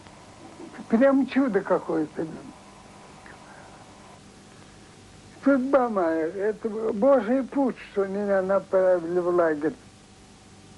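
An elderly man speaks slowly and earnestly, close by.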